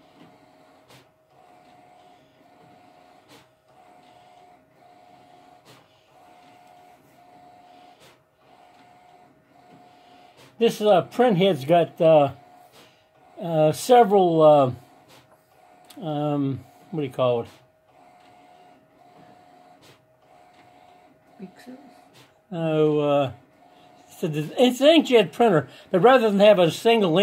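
A large printer whirs in short, evenly spaced pulses.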